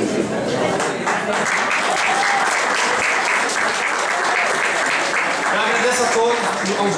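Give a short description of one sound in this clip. An audience claps and cheers in a hall.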